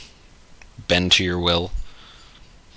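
A man speaks briefly and calmly, close by.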